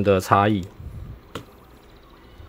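A plastic handheld device is set down on a hard table with a light click.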